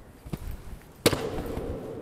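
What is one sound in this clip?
A hoof knocks against a wooden pole, ringing briefly in a large hall.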